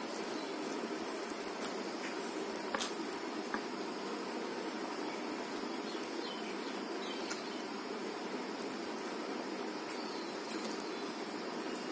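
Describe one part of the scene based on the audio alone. Fingers squish and mix rice and curry on a plate.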